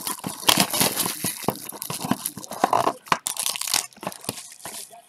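A cardboard box rattles and scrapes as it is opened by hand.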